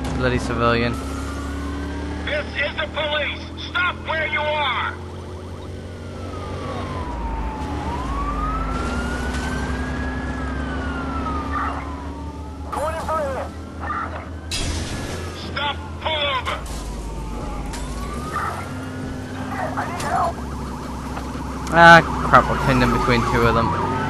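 A police siren wails, rising and falling.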